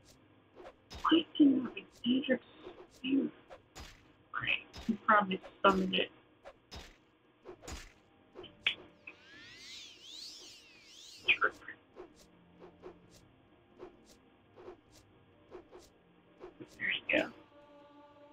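Weapons swing and strike in sharp, quick blows.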